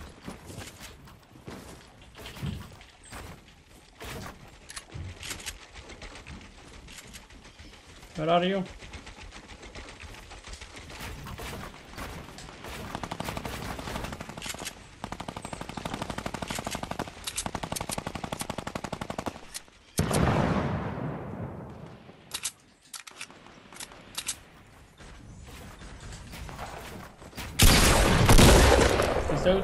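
Building pieces snap into place with quick, sharp clacks.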